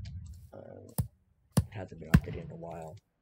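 Short sharp clicks sound a few times.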